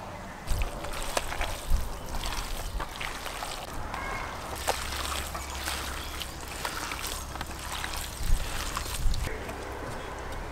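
Hands squelch and slap through a tray of raw meat.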